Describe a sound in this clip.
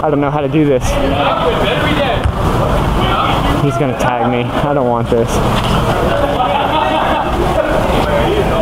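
A crowd of young people chatter and shout outdoors.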